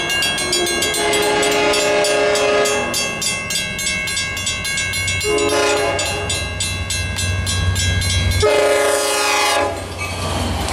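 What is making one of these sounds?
A train horn blows several long, loud blasts as it approaches.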